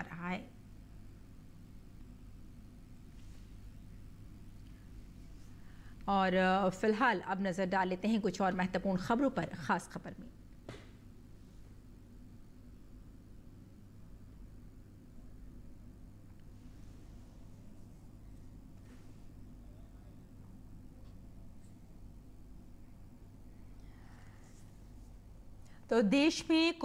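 A woman speaks calmly and clearly into a microphone, in short bursts with long pauses.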